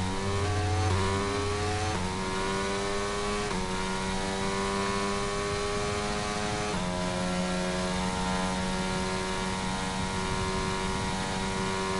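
A racing car engine screams at high revs, climbing in pitch and dropping sharply with each gear change.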